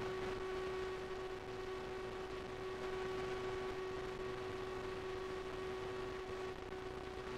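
A synthesizer holds a steady, buzzing note.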